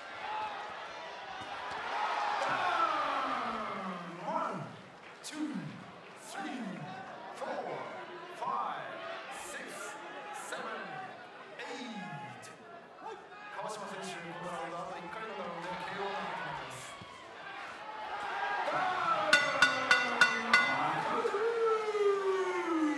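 A crowd cheers and shouts in a large hall.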